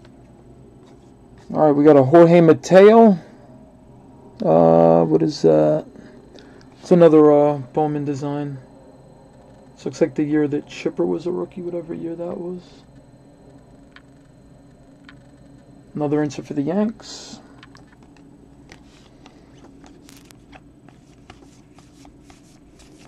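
Trading cards slide and rustle softly against each other.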